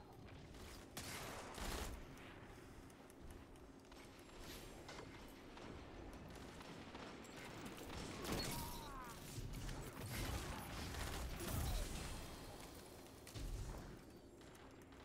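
Explosions from a video game boom loudly.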